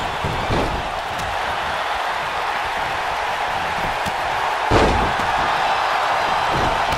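A large crowd roars steadily in a big echoing arena.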